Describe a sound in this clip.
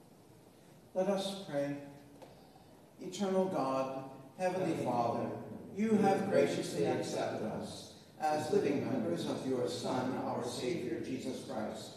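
A man chants prayers aloud in a large echoing hall.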